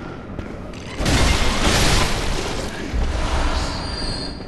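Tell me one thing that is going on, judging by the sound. A blade swishes and strikes flesh.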